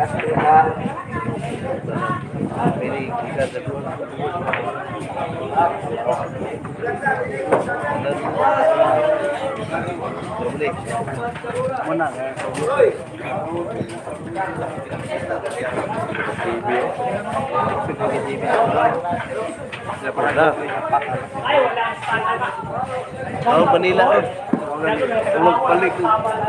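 A crowd of men and women chatters nearby throughout.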